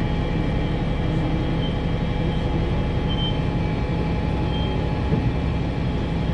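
A bus engine rumbles close by as a bus pulls up and idles.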